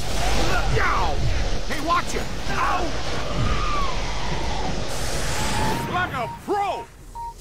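Energy beams crackle and roar loudly.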